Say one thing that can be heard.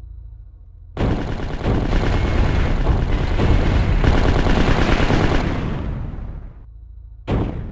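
A machine gun fires a long, rapid burst.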